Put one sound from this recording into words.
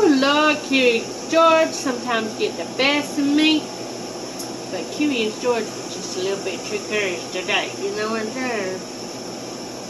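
An elderly woman talks with animation close to a microphone.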